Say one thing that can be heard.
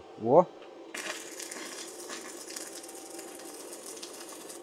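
A welding arc crackles and hisses steadily.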